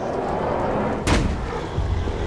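A heavy body slams onto the ground with a thud.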